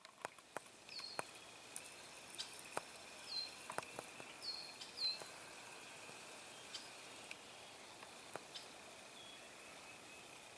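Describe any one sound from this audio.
A gosling peeps in short, high chirps.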